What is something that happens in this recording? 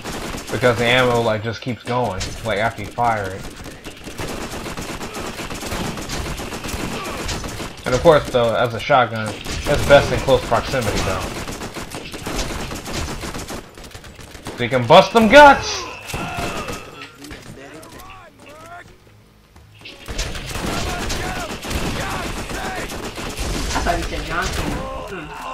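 Gunfire from a video game crackles in bursts.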